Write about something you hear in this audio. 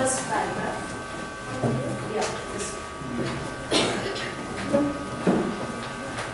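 Children chatter and talk over one another in a busy room.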